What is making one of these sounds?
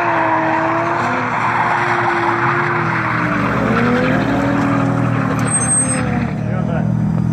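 Tyres screech loudly as a car drifts.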